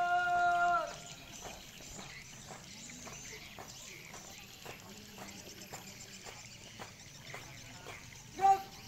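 A group of marchers stamp their feet in a steady rhythm on the ground.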